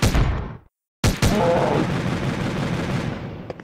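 A game explosion booms and rumbles.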